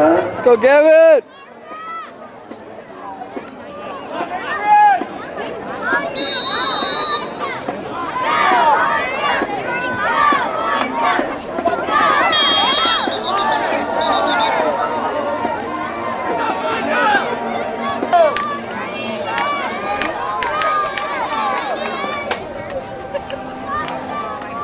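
A crowd of people cheer and shout outdoors.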